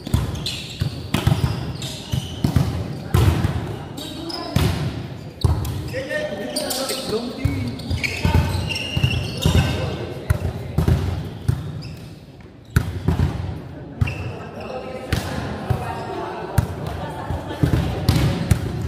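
A volleyball is struck and thuds in a large echoing hall.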